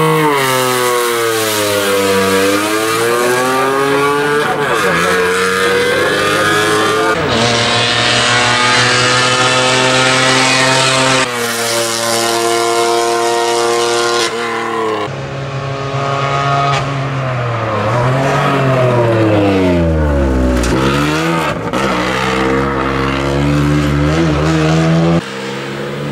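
A four-cylinder Renault Twingo race car accelerates hard, its engine revving high through the gears.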